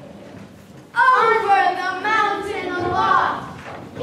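Children sing together in an echoing hall.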